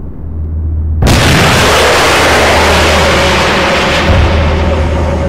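A loud explosion booms and roars before slowly dying down.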